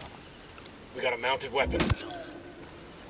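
A metal ladder clanks under climbing steps.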